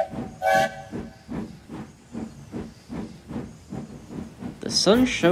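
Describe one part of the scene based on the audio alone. A toy train rattles along a track with a steady rhythmic clatter.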